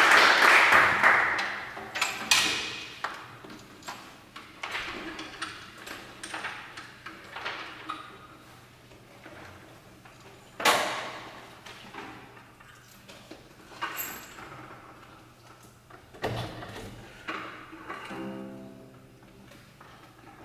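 Wooden and metal objects knock and clatter in a large echoing hall.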